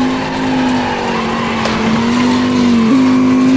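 Tyres screech as a car slides sideways.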